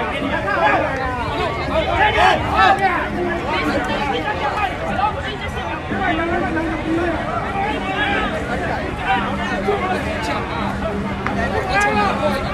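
A large crowd of young men and women chatters and shouts outdoors.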